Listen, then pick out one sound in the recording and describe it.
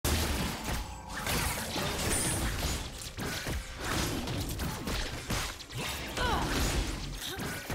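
Fantasy video game combat sounds clash and zap in quick bursts.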